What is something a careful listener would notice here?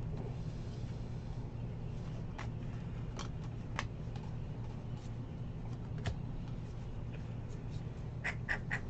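Glossy cards slide and flick against each other close by.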